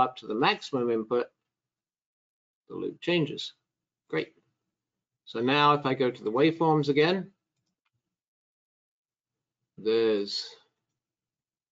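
A middle-aged man speaks calmly into a microphone in short phrases.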